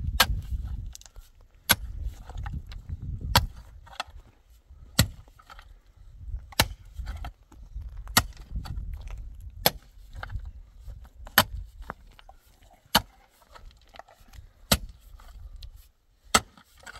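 Loose stones and soil scrape and rattle as they are dug.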